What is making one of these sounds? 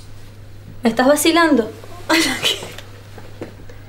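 A young woman speaks up close, with emotion.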